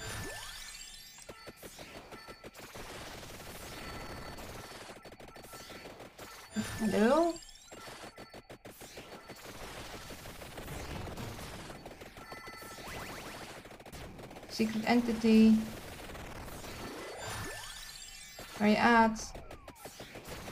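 Rapid electronic hit sounds clatter constantly.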